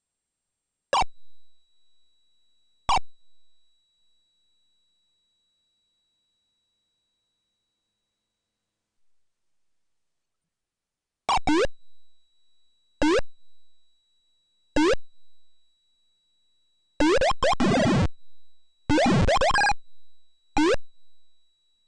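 Short electronic game blips sound now and then.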